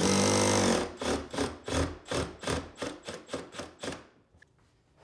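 Rapid tapping knocks sound on wood.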